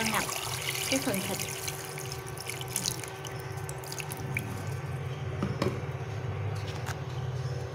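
Liquid pours and splashes into a pot of food.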